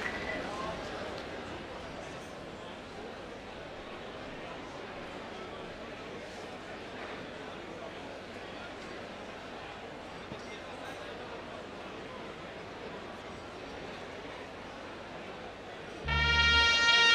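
A large audience applauds and cheers in a big echoing hall.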